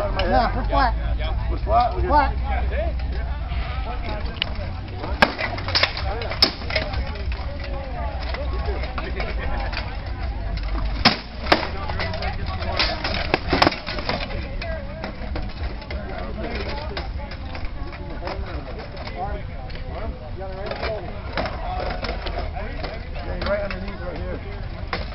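A crowd of onlookers chatters in the background outdoors.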